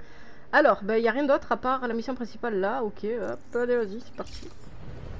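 A young woman talks with animation into a nearby microphone.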